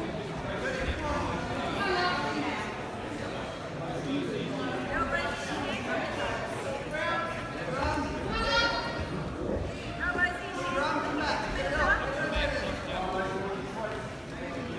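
Several adults in the crowd call out and shout encouragement in a large echoing hall.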